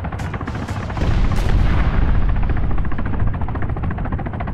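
A missile strikes a helicopter with a loud, rumbling blast.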